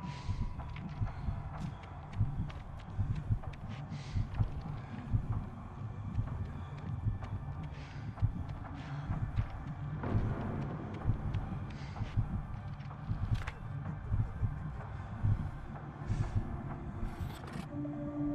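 Footsteps crunch softly on rock.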